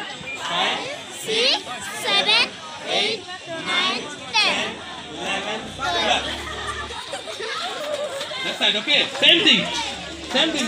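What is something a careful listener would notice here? Children sing together through loudspeakers outdoors.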